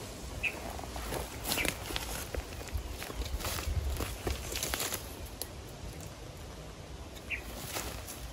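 Dry leaves crunch underfoot as a man walks through brush.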